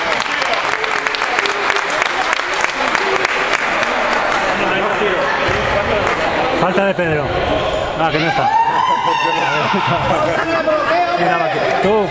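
Men shout and call out in a large echoing hall.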